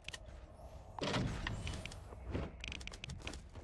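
Quick footsteps patter over a hard surface.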